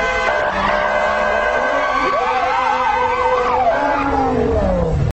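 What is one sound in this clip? Tyres screech loudly as cars drift and spin.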